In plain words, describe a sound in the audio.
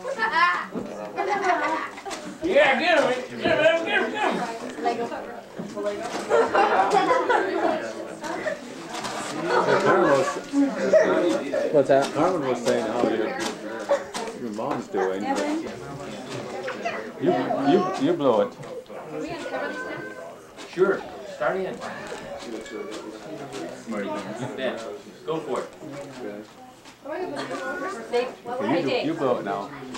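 Several people talk and laugh at once in a room.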